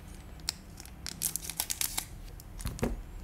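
Scissors snip through a foil wrapper.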